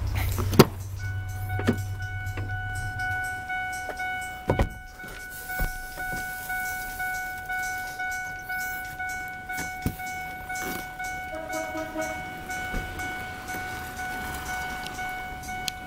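A vehicle's warning chime dings over and over at a steady pace.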